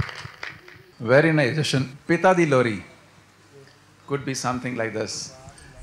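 A young man speaks into a microphone over a loudspeaker in a large hall.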